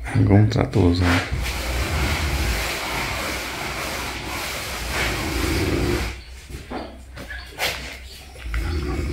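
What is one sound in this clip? An elderly man breathes heavily close by.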